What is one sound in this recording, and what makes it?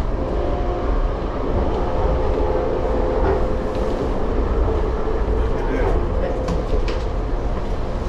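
Wheels squeal faintly against the rails.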